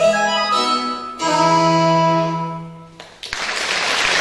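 An accordion plays a held chord that ends a tune.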